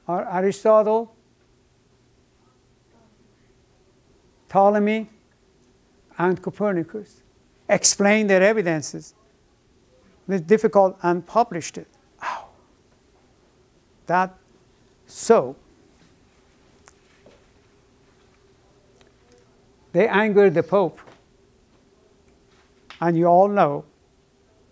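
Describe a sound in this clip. An elderly man lectures calmly in short bursts, with pauses, in a room.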